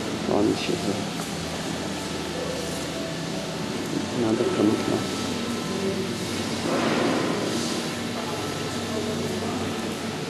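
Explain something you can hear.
Adults talk quietly nearby in a large echoing hall.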